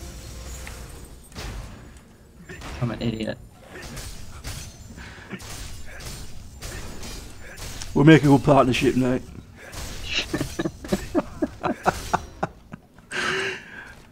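Weapons clash and strike a creature in quick blows.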